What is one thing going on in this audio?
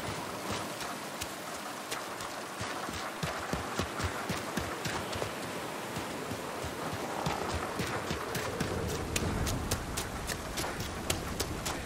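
Footsteps swish through grass outdoors.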